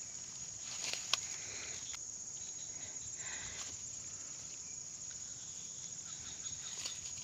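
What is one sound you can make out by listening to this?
Grass and dry stalks rustle as they are brushed aside.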